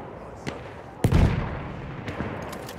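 A heavy explosion booms nearby.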